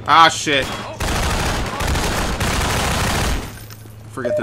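Automatic gunfire rattles in a rapid, steady burst.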